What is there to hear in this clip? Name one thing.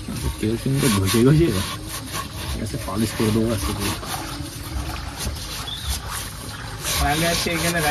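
A cloth rubs over a wet metal surface.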